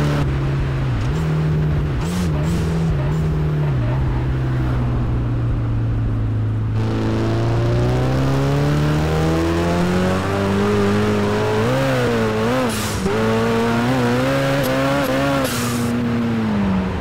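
A car engine hums, slows down, then revs up hard as the car speeds up.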